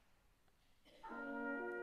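A trumpet, horn and trombone start playing a chord together.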